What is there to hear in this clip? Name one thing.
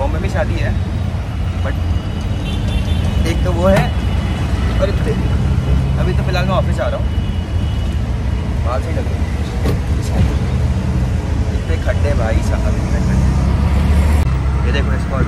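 A young man talks close to the microphone.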